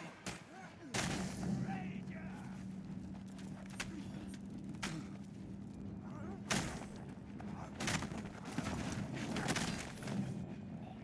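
Heavy punches and blows thud in a fight.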